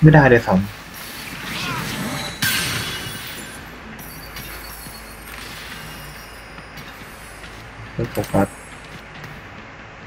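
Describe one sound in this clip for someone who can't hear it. Fantasy battle sound effects clash, zap and burst.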